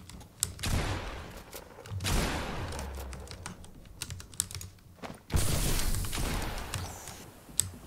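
Game sound effects clatter and thud in quick bursts.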